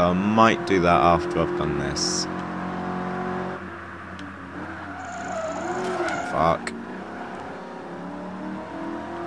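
A race car engine roars loudly, revving up and down through gear changes.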